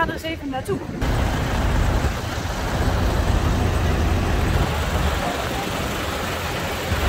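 Tractor engines rumble steadily outdoors.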